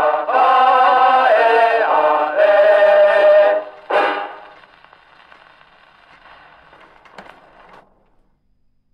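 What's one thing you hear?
A gramophone needle hisses and crackles in the record's groove.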